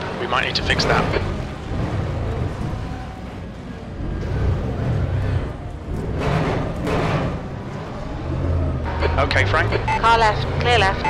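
A race car engine roars and revs steadily.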